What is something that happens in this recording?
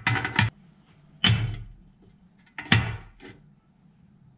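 Metal knocks and clanks as a part is handled.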